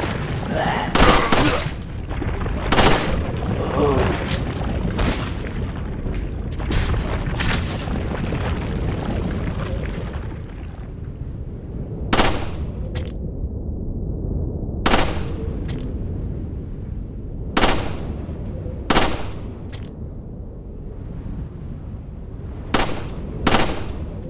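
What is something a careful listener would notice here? Gunshots ring out one at a time, echoing in a large hall.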